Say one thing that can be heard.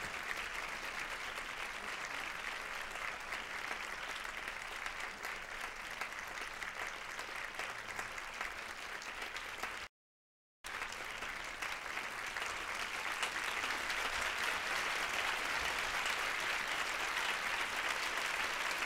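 A large audience applauds steadily in a big hall.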